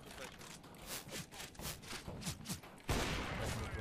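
Quick footsteps tap on hard ground.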